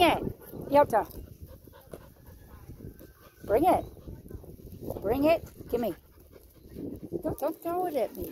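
A dog pants close by.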